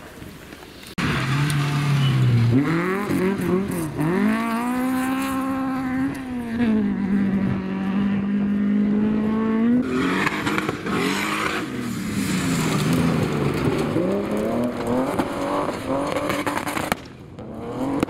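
A rally car engine roars and revs hard up and down.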